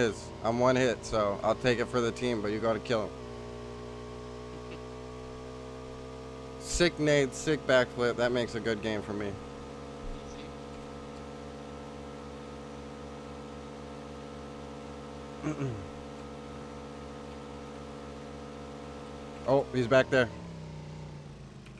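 A motorbike engine drones steadily.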